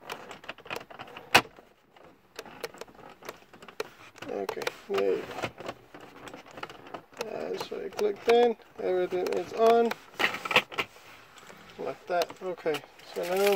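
A plastic cover slides and clicks shut.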